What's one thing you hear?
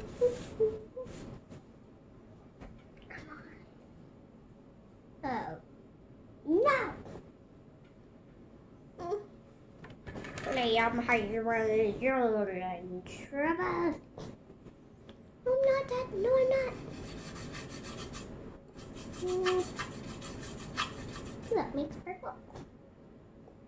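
A young girl talks and sings playfully close by.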